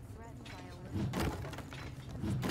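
A heavy weapon smashes through wooden crates with a loud crash.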